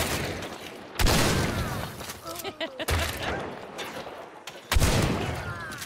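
Gunshots blast loudly.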